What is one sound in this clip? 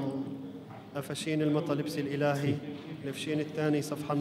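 A man reads out a chant through a microphone.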